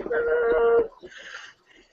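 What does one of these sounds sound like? A young woman laughs over an online call.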